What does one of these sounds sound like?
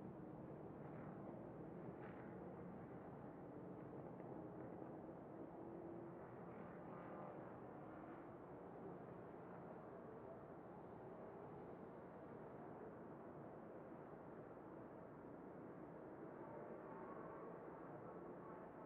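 Wind rushes past at high speed.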